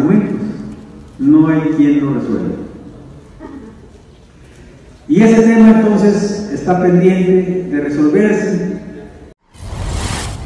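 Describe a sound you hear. A middle-aged man speaks firmly into a microphone, heard through loudspeakers in a large room.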